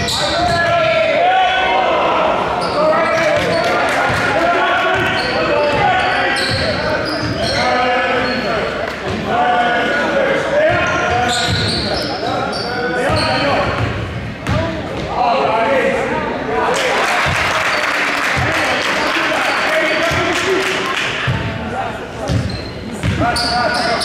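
A crowd of young spectators cheers and shouts in a large echoing gym.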